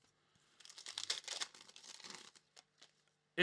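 Foil card wrappers crinkle and rustle in hands.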